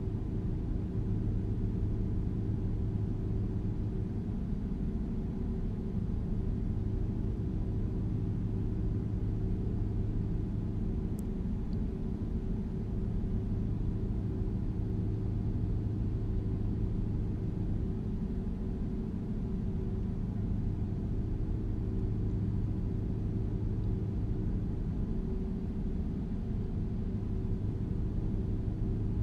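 A truck's diesel engine drones low and steady while driving.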